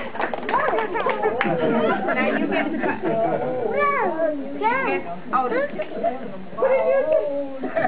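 A group of elderly women and men sing together.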